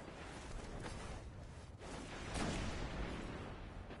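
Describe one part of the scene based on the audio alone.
A rifle fires with a loud crack.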